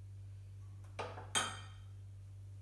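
Utensils clink against a dish.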